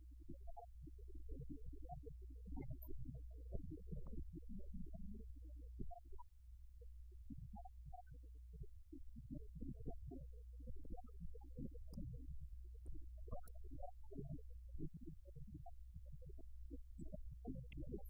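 A middle-aged man speaks calmly into a microphone, in a room with a faint echo.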